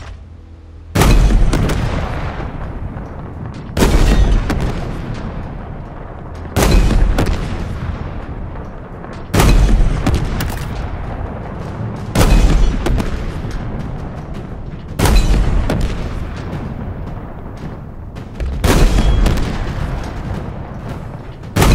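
A tank cannon fires booming shots again and again, each rumbling away.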